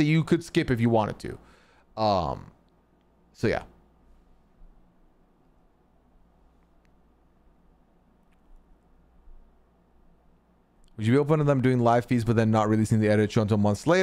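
A man speaks calmly and closely into a microphone, pausing in between.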